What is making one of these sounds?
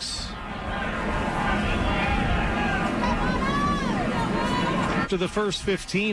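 A large crowd cheers and roars in an open stadium.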